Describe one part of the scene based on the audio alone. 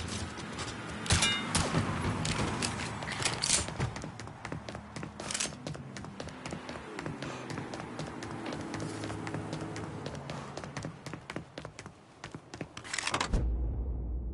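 Footsteps run quickly over hard ground.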